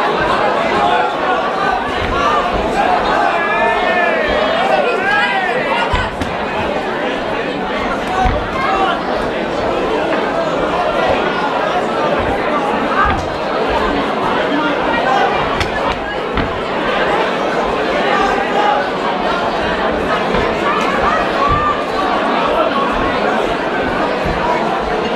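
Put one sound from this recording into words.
A crowd of men and women shout and cheer loudly in an echoing hall.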